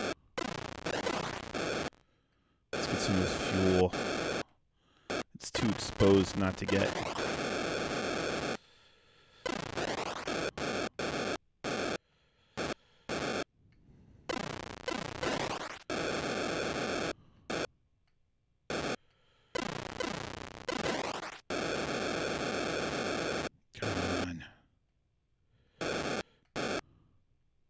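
Harsh, buzzing electronic game sounds come in short bursts, with quiet gaps between them.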